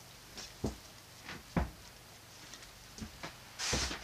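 Water pours and splashes into a pot.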